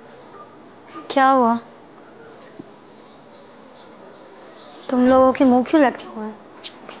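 A woman speaks in a raised, emotional voice nearby.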